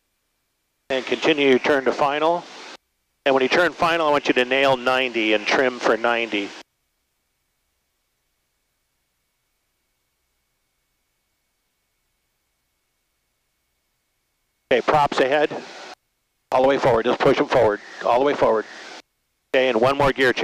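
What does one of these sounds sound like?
A man speaks calmly over a headset microphone.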